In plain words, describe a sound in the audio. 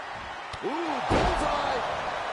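A body slams hard onto the wrestling ring mat with a heavy thud.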